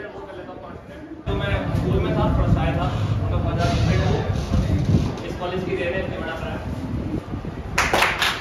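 A group of young people chatter and laugh together.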